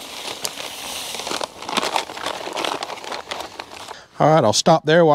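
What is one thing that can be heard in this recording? Dry concrete mix pours and rattles out of a bag into a hole.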